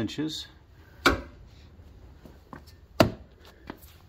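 A hand taps on a hard plastic step.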